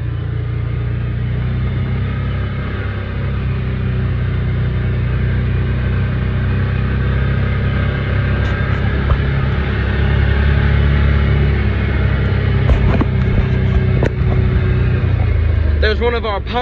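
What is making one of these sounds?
A utility vehicle's engine hums steadily as it drives, then fades.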